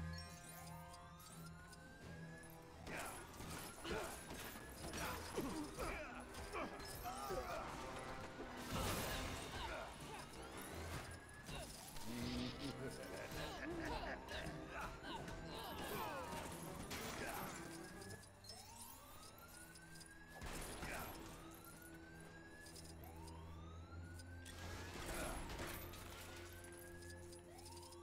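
Background music plays steadily throughout.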